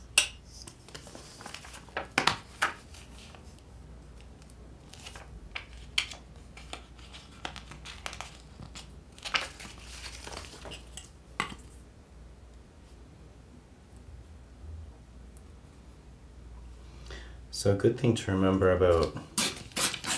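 Paper rustles and crinkles as pages are handled close by.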